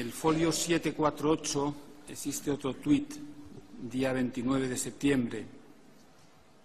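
A middle-aged man speaks calmly into a microphone in a large room.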